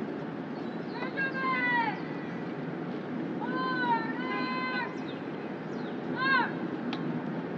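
A man shouts long, drawn-out drill commands outdoors, heard from a distance.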